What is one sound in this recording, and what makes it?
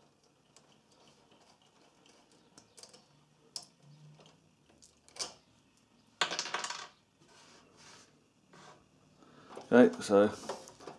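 Small metal parts click and rattle inside a sheet-metal welder cabinet.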